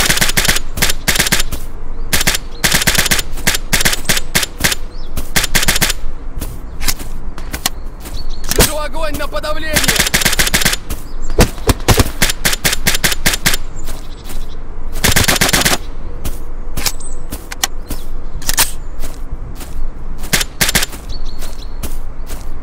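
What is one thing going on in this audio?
Rapid gunfire bursts from a rifle, close by.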